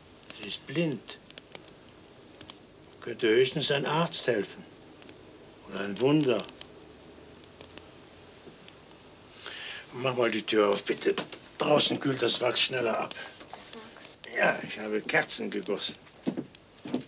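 An elderly man speaks in a low, calm voice close by.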